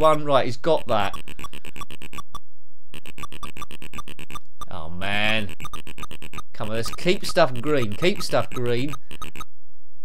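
Chiptune tones warble and sweep up and down in pitch.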